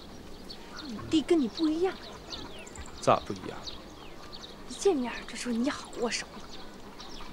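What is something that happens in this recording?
A young woman speaks brightly and with animation close by.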